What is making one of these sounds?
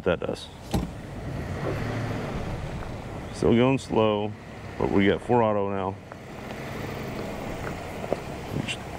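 Tyres crunch slowly over loose gravel.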